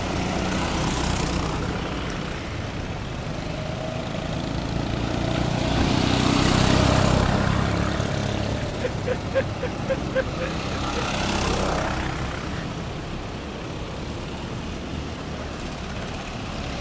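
Go-kart engines buzz and whine as karts race past.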